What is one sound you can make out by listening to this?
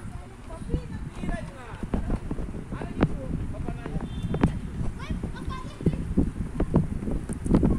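Children's voices chatter nearby outdoors.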